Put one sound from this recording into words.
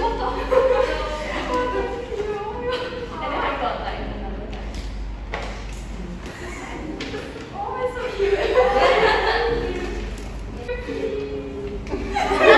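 Paper rustles as a gift is unwrapped.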